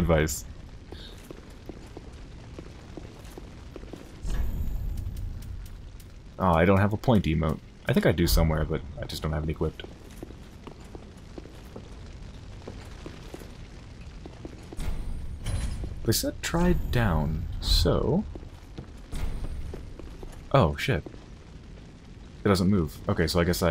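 Armored footsteps clank on a stone floor.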